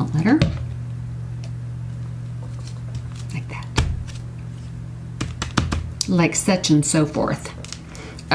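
Paper rustles and taps against a table.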